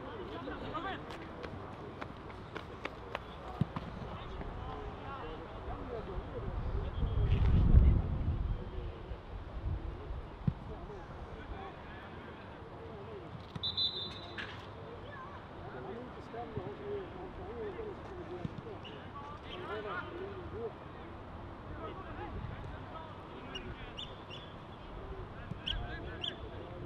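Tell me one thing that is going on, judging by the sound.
Young men shout to each other at a distance outdoors.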